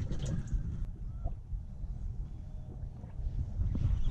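A fishing reel clicks as its handle turns.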